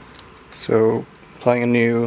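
A small plug clicks into a phone.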